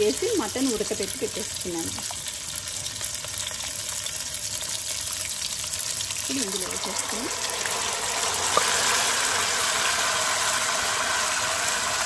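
A wooden spoon scrapes thick curry from a metal pot.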